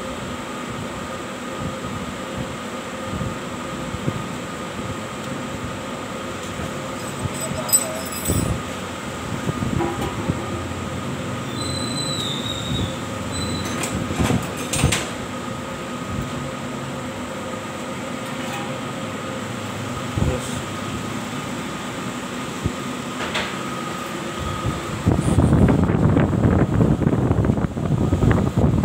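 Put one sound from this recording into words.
A steady machine hum fills the room.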